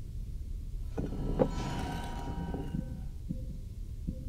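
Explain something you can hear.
A metal mechanism clanks and whirs as a lock panel opens.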